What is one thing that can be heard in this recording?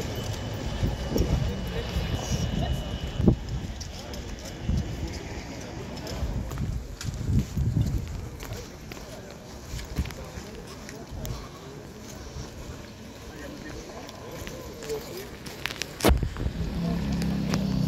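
A tram rolls slowly along the tracks.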